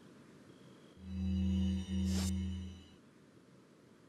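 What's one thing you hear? A menu chimes with a short electronic tone.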